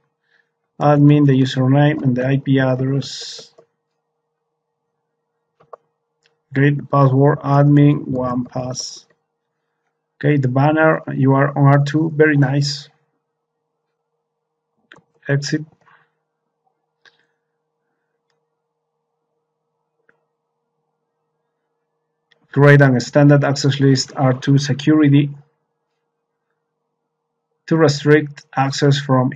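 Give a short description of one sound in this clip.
A man speaks calmly and clearly into a close microphone, pausing now and then.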